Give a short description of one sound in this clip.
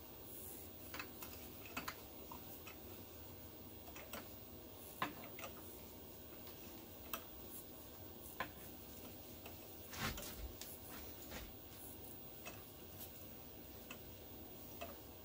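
Small metal tools knock and clink against a steel vise.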